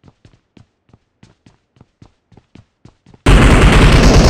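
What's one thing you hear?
Footsteps thud quickly.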